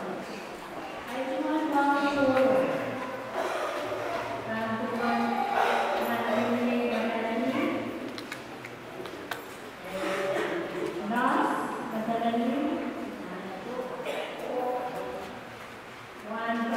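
A woman speaks calmly into a microphone, heard through a loudspeaker in an echoing room.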